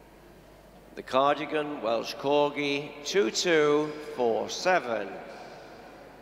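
A man speaks nearby in a calm voice.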